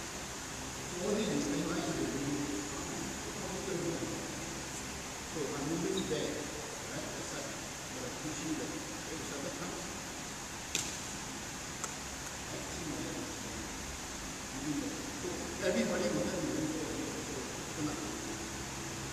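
Two men talk in a large echoing hall.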